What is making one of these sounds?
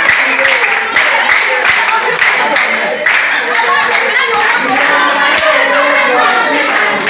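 Hands clap in a steady rhythm.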